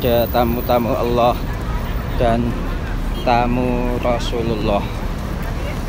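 A man nearby calls out loudly in a sing-song voice.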